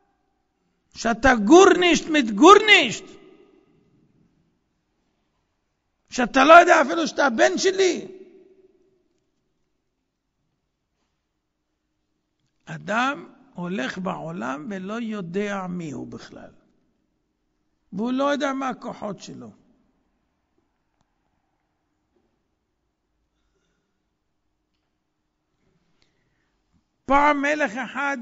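A middle-aged man lectures with animation through a microphone, with long pauses.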